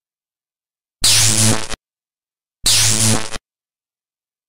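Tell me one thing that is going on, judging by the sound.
Electric sparks crackle and zap in two short bursts.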